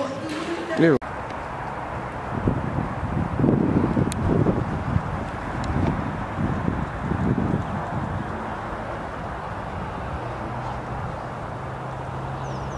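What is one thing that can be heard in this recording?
Wind blows outdoors and rumbles against the microphone.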